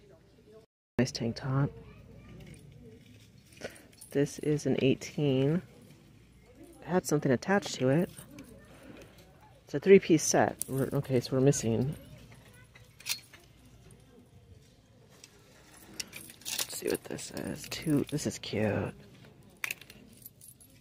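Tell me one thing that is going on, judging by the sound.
Metal bracelets jingle on a wrist.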